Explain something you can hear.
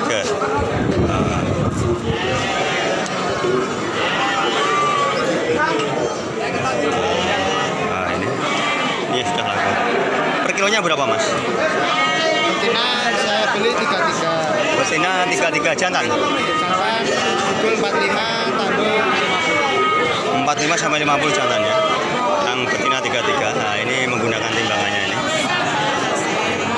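Sheep and goats bleat loudly nearby.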